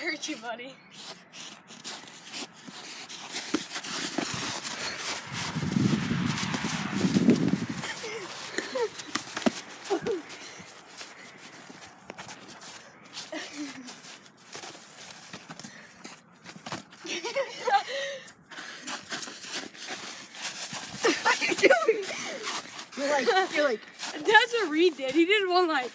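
Boxing gloves thump against each other.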